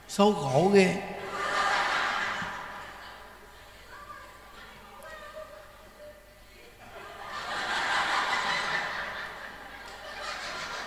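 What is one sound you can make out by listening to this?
A crowd laughs and applauds.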